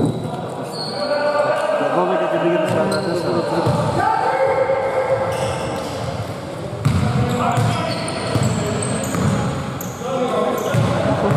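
Players call out to each other across the hall.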